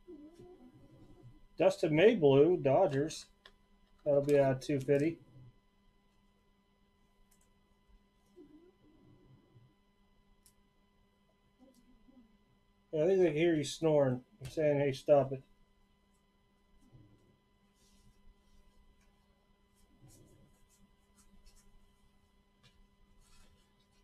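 Trading cards rustle and slide as they are handled.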